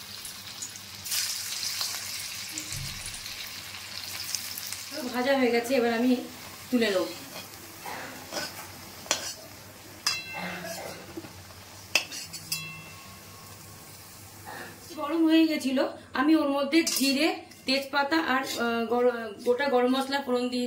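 Oil sizzles in a hot pan.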